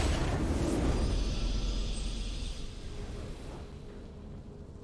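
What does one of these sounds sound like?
A triumphant game fanfare bursts out and fades away.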